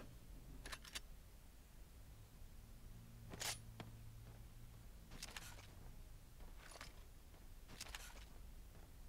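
Sniper rifle shots crack sharply in a game, a few times.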